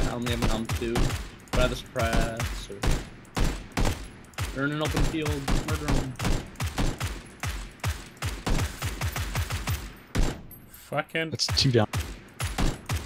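Rifle shots crack in quick succession, one after another.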